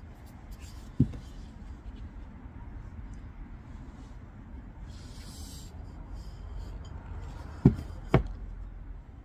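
A clay pot knocks against a hard surface.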